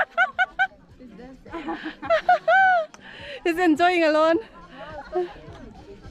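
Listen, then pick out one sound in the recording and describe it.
Young women close by shout and squeal with excitement outdoors.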